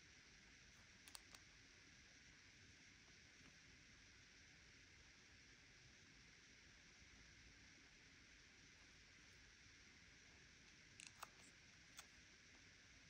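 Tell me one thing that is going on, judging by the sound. Fingertips tap lightly on a phone's glass.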